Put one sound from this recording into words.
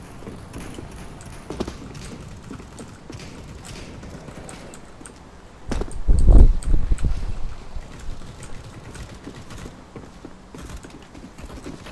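Footsteps thud quickly across hard floors.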